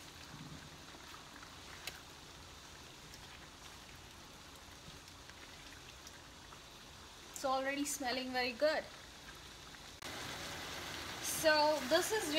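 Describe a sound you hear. A spatula scrapes and stirs food in a pan.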